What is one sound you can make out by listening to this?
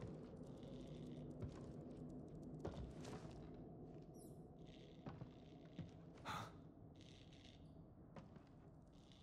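Footsteps thud and creak on a wooden floor.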